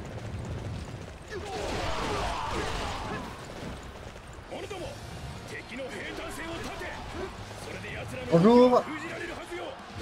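Soldiers clash and shout in a battle.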